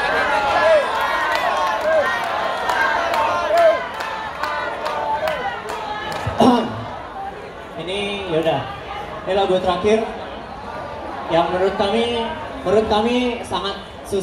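A string ensemble plays a lively tune through loudspeakers in a large echoing hall.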